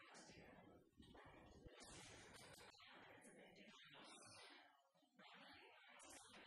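A second young woman answers cheerfully into the microphone.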